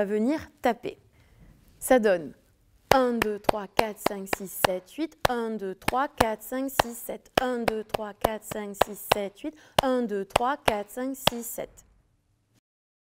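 A young woman chants and counts rhythmically, close to a microphone.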